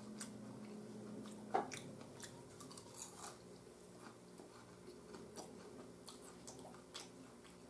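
A man chews food up close.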